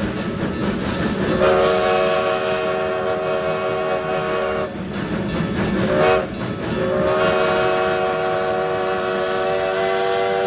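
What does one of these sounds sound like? A steam locomotive chuffs and hisses steam close by.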